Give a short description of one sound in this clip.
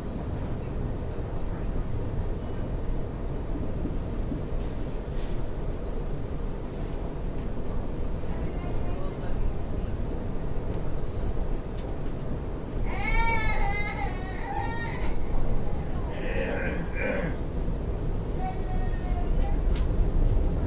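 A vehicle's engine rumbles steadily.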